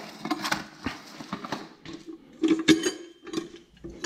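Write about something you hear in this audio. A metal tin lid scrapes open.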